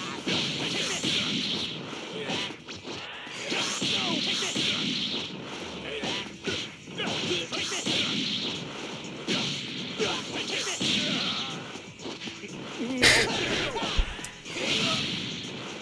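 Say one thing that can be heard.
Punches and kicks thud rapidly.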